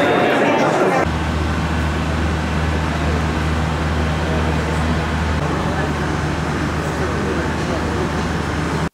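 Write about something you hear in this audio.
A parked train hums steadily.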